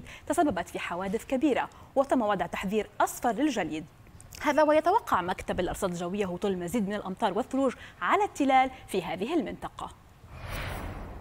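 A young woman speaks clearly and with animation into a microphone.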